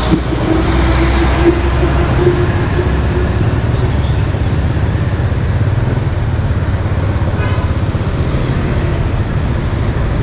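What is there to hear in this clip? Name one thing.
A motor scooter engine hums close by.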